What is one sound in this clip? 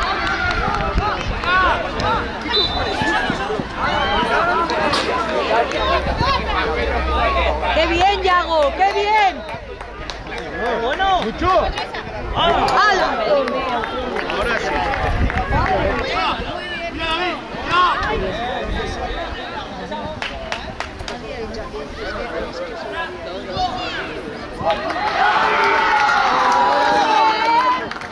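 A woman nearby calls out and cheers with excitement.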